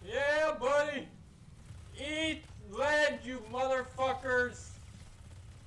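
A man speaks with animation into a nearby microphone.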